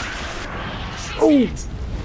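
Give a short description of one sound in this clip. An explosion bursts with a rumble.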